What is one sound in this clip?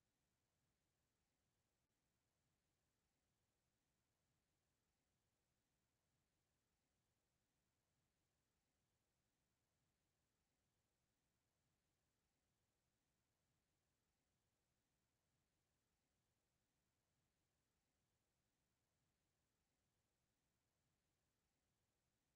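A clock ticks softly and steadily.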